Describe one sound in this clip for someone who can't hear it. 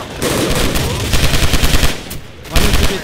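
Rapid gunshots ring out in a short burst.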